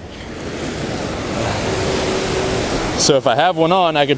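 Waves splash against rocks.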